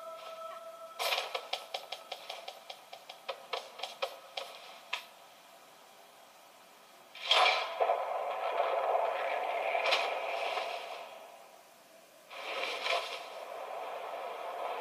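A video game plays through a television speaker, with sharp clicks and blasts, heard across a room.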